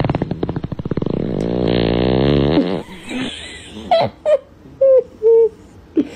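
A newborn baby giggles softly.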